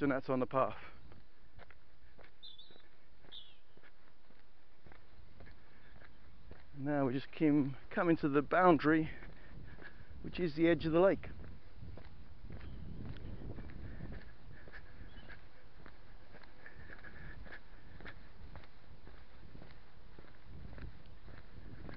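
Footsteps crunch steadily on a dry dirt path.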